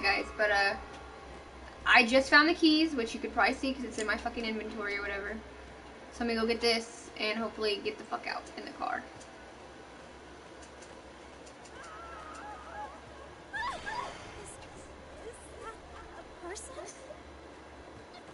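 A young woman talks with animation into a microphone, close by.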